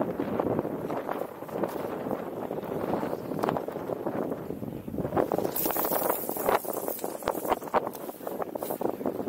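Water laps against the side of a small boat.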